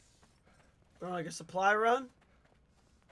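A young man speaks loudly and animatedly, close to a microphone.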